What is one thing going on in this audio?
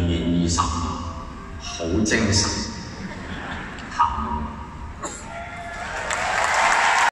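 A man speaks calmly over a loudspeaker in a large echoing hall.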